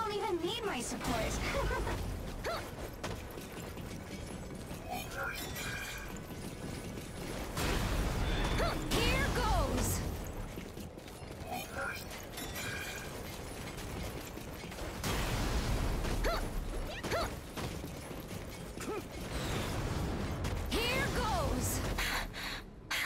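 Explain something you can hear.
Heavy impacts boom with deep rumbles.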